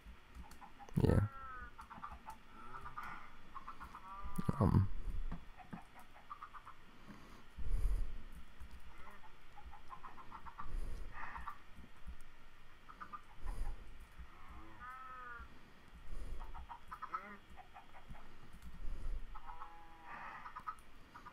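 Cows moo in low, drawn-out calls.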